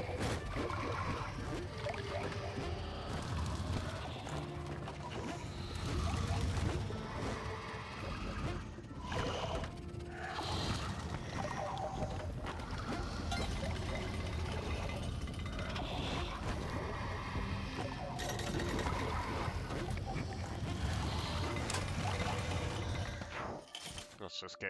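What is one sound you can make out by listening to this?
Lively game music plays.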